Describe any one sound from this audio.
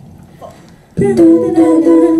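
A group of young men and women sing together through microphones.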